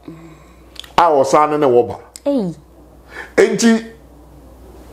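An older man speaks with animation into a close microphone.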